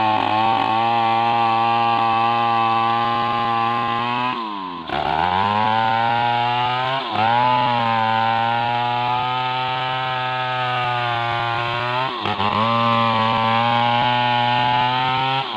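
A chainsaw roars loudly as it cuts into a tree trunk, its engine dipping and revving up again.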